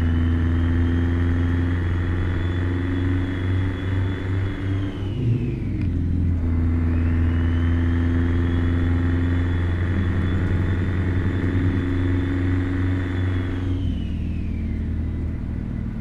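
A turbo whines high, falls away and then rises again.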